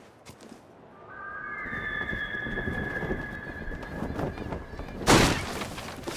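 Wind rushes loudly past during a long fall.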